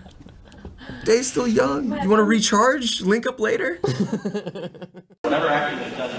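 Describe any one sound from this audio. A young man talks and laughs close to a microphone.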